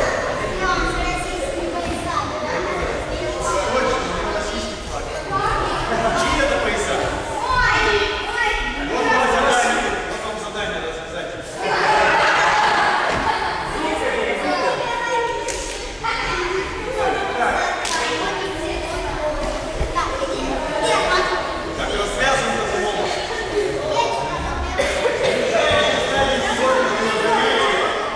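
Many children chatter and call out in a large echoing hall.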